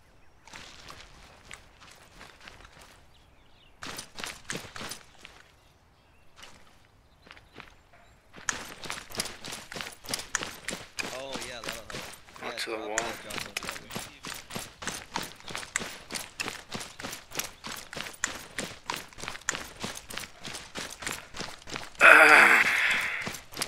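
Footsteps crunch quickly over dry, gravelly ground.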